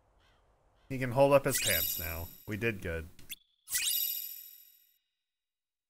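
A short game jingle chimes.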